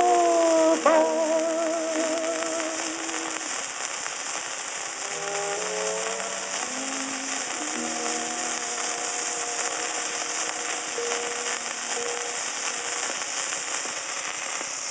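Old-fashioned music plays from a spinning record, thin and tinny.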